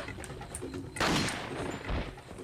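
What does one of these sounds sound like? A handgun fires a single shot.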